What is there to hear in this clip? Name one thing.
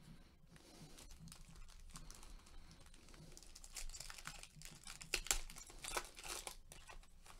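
Gloved hands crinkle and tear open a foil card pack.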